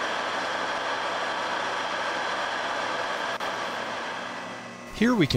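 A metal lathe whirs and hums steadily.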